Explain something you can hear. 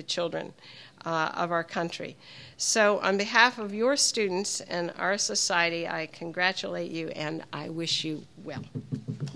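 A middle-aged woman speaks through a microphone in a large room.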